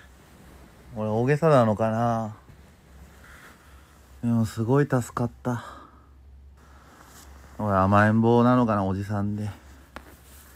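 A man speaks close by in a tired, groaning voice, in short bursts.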